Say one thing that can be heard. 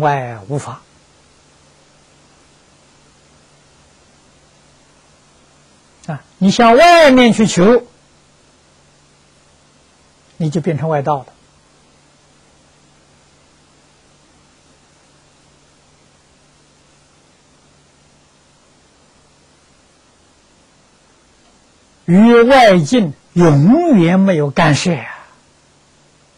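An elderly man speaks calmly into a clip-on microphone, in short phrases with long pauses.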